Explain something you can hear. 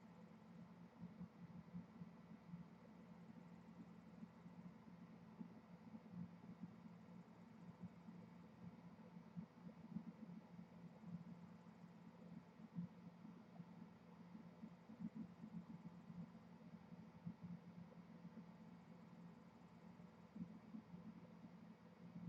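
Water bubbles gently.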